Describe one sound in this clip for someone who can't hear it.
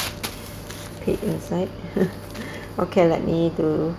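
Tissue paper rustles and crinkles under a hand.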